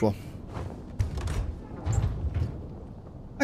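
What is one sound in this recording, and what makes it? A wooden chest lid thumps open.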